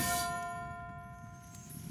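Flames crackle on a burning building.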